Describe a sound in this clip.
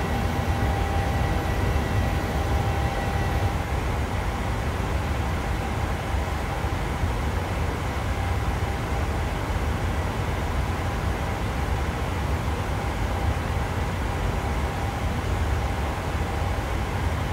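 Jet engines roar steadily in flight.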